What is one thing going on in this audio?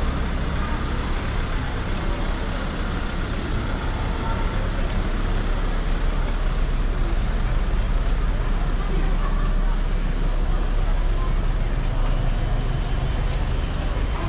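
A car engine idles and rolls past nearby.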